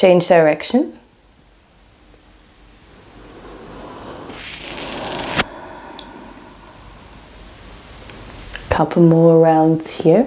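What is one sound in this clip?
A young woman speaks calmly and slowly nearby.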